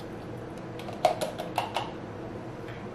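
A glass jar clinks down on a saucer.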